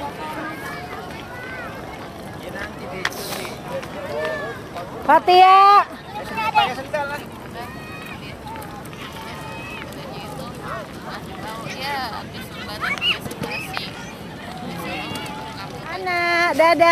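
Young children chatter and shout excitedly nearby, outdoors.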